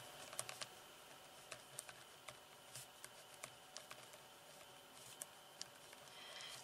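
A marker squeaks and taps as it writes on paper.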